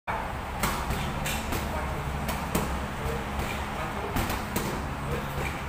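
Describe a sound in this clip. Bare feet shuffle and thud on a mat.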